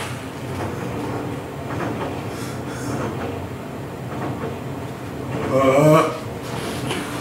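A man speaks in a room with some echo, rising to a loud, drawn-out call.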